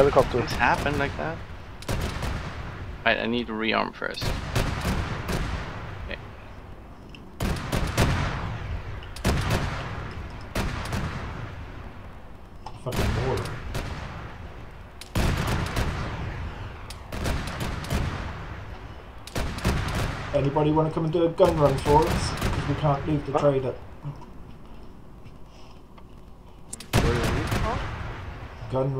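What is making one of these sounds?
Gunshots crack repeatedly, each echoing far across open ground.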